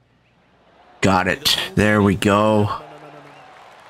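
A man speaks loudly and excitedly into a close microphone.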